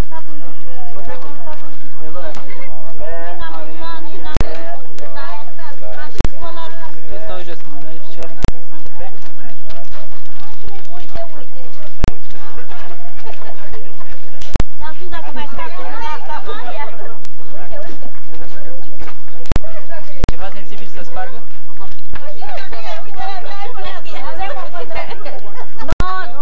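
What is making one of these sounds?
Several men and women chat outdoors at a gathering.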